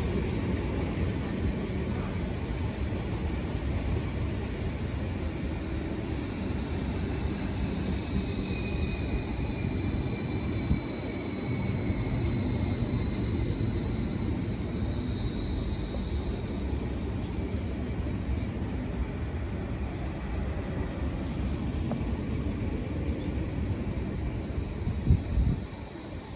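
A passenger train rumbles past close by on the rails, outdoors.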